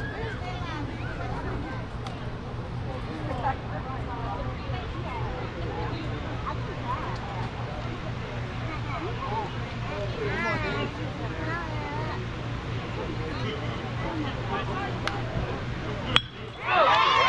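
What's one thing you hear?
People chatter and call out nearby outdoors.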